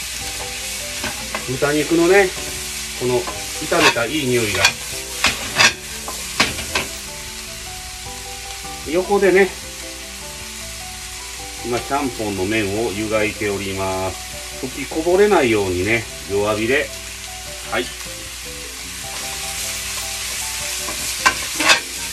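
Vegetables sizzle in a hot frying pan.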